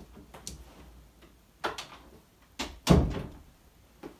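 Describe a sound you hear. A door creaks open and bumps shut.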